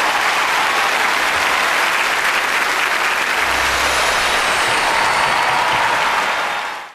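A large crowd applauds and cheers in a big hall.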